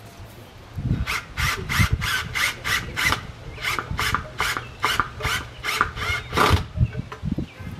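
A hand saw cuts through a branch with quick, rhythmic strokes.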